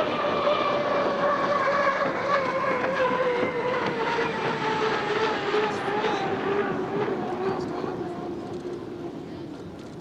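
A racing boat's engine roars loudly, its pitch falling as it passes and fades.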